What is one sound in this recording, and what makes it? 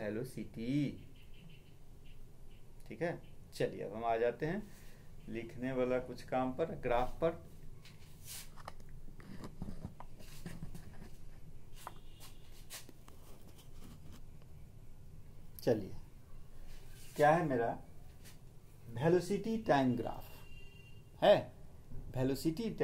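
A middle-aged man speaks calmly and close up, explaining with pauses.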